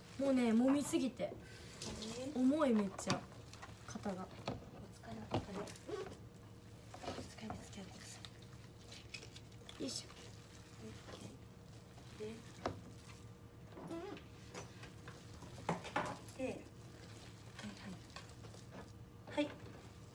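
Hands squish and knead raw ground meat in a metal pot.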